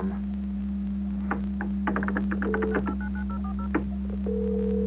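Fingers tap on a keyboard.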